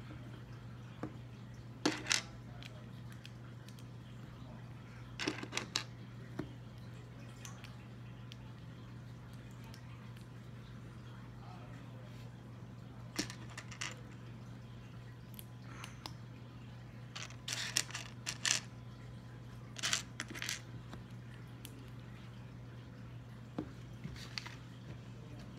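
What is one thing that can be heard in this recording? Small plastic pieces click and snap together close by.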